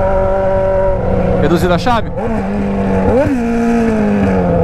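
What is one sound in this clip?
An inline-four sport motorcycle with a straight-piped exhaust shifts gears, its revs dropping and rising.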